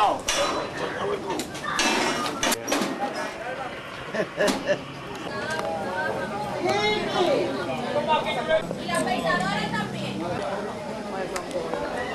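Several men talk and shout over one another nearby.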